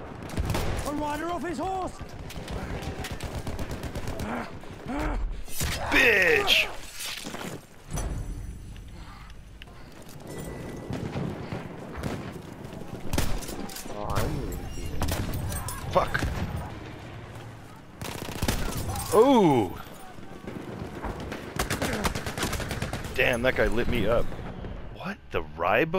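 A pump-action shotgun fires.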